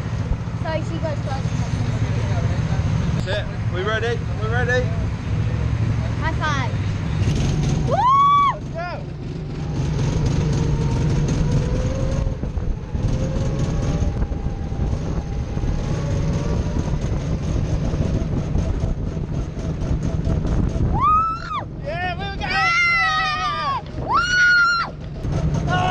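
A go-kart engine buzzes steadily up close.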